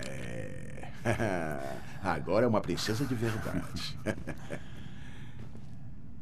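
A man speaks warmly and with animation, close by.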